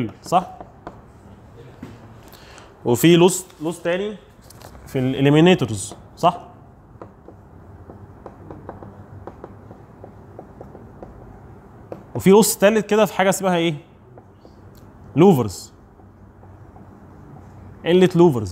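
A young man speaks calmly, pausing often.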